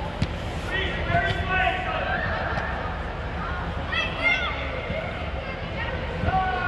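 Children shout to each other in a large echoing hall.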